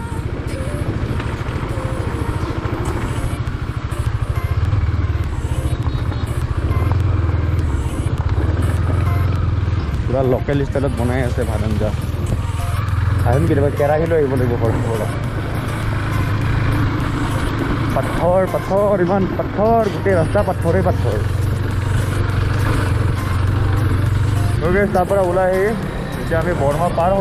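A motorcycle engine hums steadily at low revs.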